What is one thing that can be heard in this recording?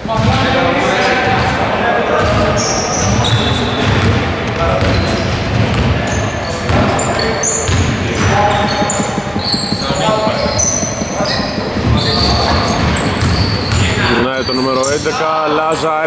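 Sneakers squeak on a court.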